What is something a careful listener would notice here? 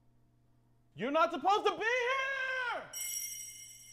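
A man screams loudly in fear.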